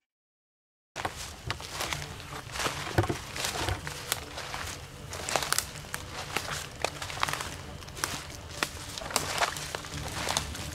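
Footsteps crunch through dry leaves on the ground.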